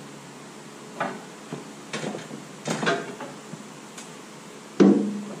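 Metal knocks and clanks against a heavy machine a few times.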